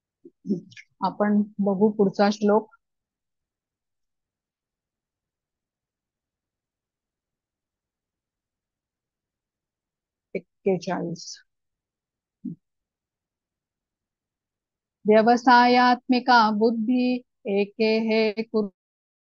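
A woman speaks calmly over an online call, pausing between phrases.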